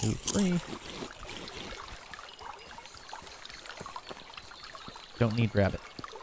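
Water trickles gently in a shallow stream.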